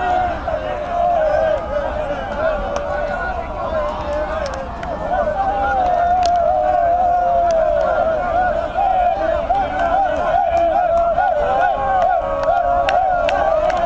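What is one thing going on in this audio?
Several young men shout and argue angrily outdoors.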